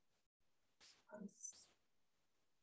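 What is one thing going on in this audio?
A young woman speaks briefly and quietly over an online call.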